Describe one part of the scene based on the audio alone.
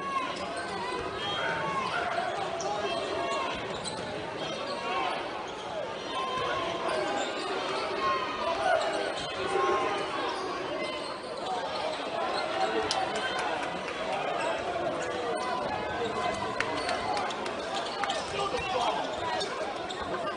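A large crowd cheers and chatters in an echoing arena.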